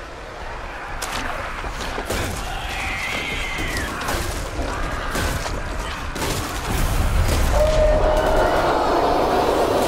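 A blade slashes and strikes flesh with wet thuds.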